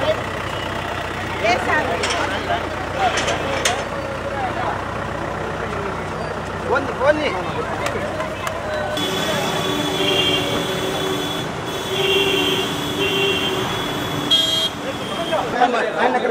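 A crowd of men talk and shout loudly nearby.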